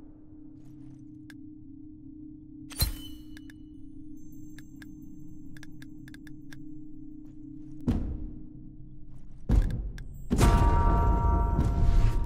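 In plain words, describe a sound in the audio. Menu selections click softly.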